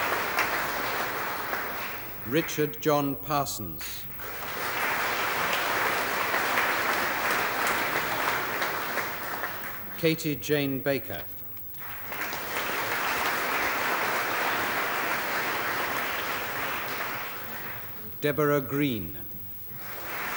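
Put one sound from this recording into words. An audience claps in a large echoing hall.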